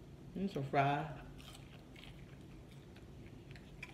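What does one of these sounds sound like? A woman chews food.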